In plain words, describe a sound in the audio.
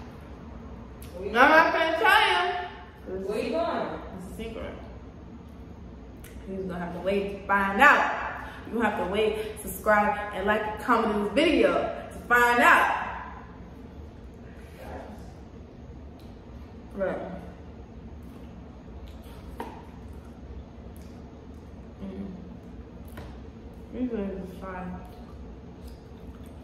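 A young woman chews food with wet, smacking sounds.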